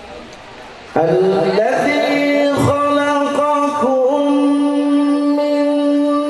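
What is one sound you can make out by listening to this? A man chants loudly into a microphone in a long, held melodic voice.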